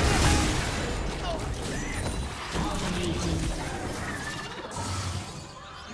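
Spell blasts and hits from a fantasy video game battle crackle and thump in quick succession.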